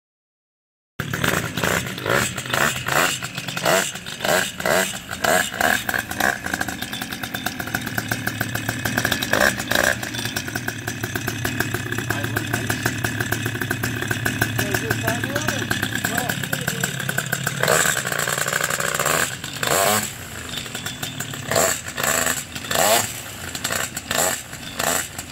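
A small engine runs and roars close by.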